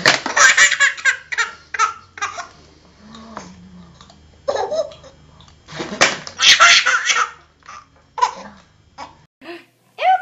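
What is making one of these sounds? A baby laughs loudly and breathlessly, close by.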